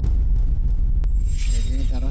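A hammer strikes and shatters something hard.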